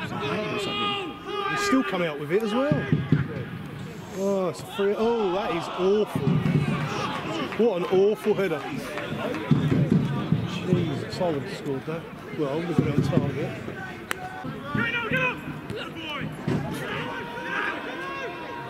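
A football is kicked with a thud.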